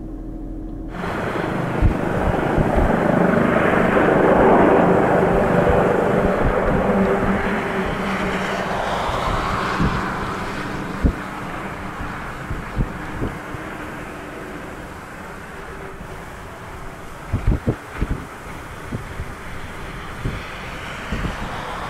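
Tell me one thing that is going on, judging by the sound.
A helicopter's rotor blades whir and thump loudly.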